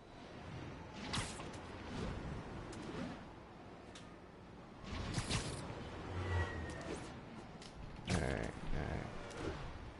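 Air rushes past in swooping whooshes.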